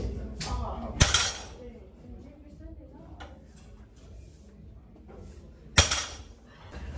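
Weight plates on a barbell clank loudly against the floor.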